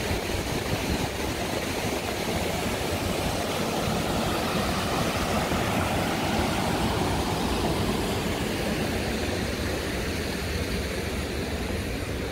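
Water rushes over a weir in a steady roar.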